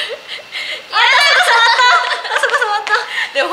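A young woman talks excitedly close by.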